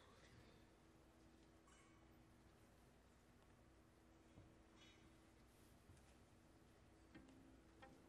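A piano plays soft notes.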